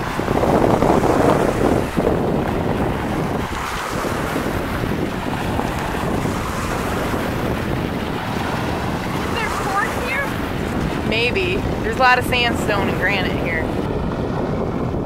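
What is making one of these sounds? Wind blows steadily and rustles tree leaves outdoors.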